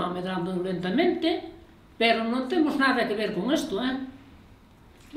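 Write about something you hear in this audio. An elderly woman speaks with animation nearby.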